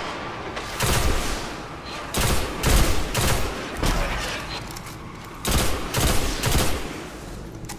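Gunshots fire in short bursts, with booming echoes.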